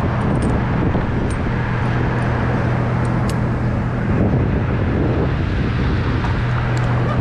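Wind rumbles steadily against a microphone high outdoors.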